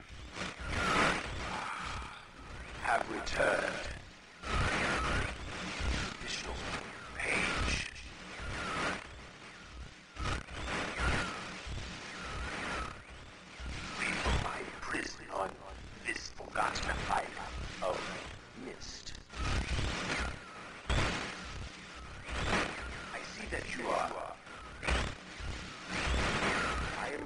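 A man talks with animation through a small, tinny speaker.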